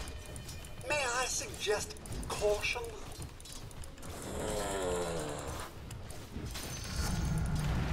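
Fantasy combat sound effects clash and crackle.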